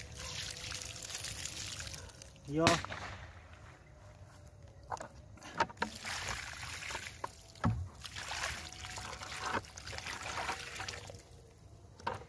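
Water pours from a cup onto soil.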